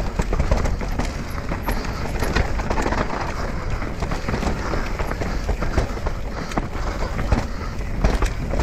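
Bike tyres rumble and crunch over a rough dirt trail.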